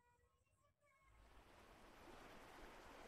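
Waves wash steadily against a shore.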